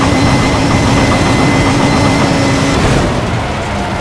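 A car crashes with a loud, rough crunch.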